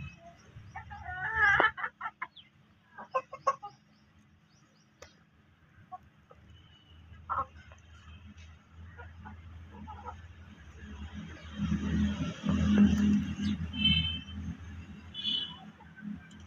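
Chickens peck at the ground with quick taps.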